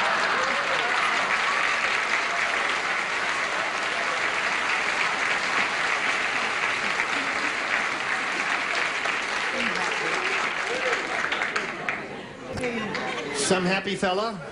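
A woman laughs behind her hand.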